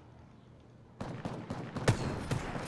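Gunshots from a video game crack in quick bursts.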